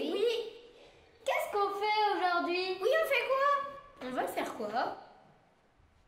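Children shout and laugh excitedly.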